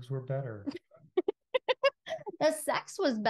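A woman laughs, close to a microphone.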